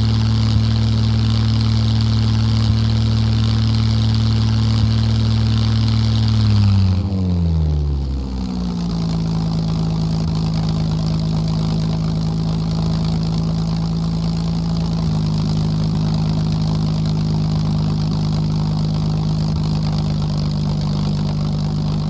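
A propeller plane engine drones loudly, dropping in pitch partway through and then holding steady.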